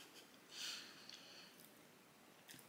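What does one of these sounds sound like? A young woman chews food noisily.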